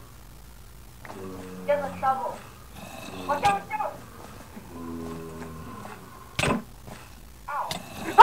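A zombie groans low and hoarsely nearby.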